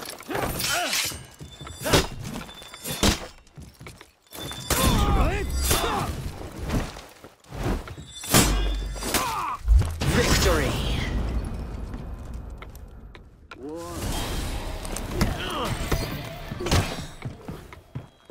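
Steel blades clash and ring sharply.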